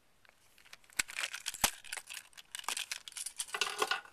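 Soft toys rustle and crinkle as a hand rummages through them, close by.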